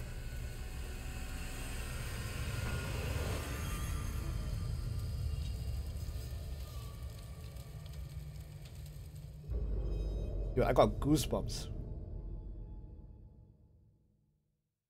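A fire burns with a low, steady roar.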